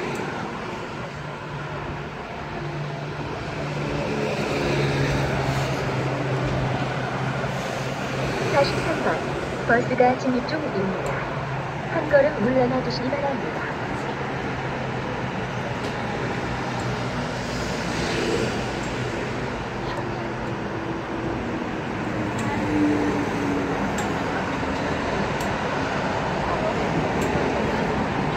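A fingertip taps lightly on a touchscreen.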